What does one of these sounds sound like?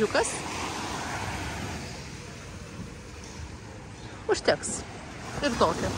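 Gentle waves wash onto a rocky shore.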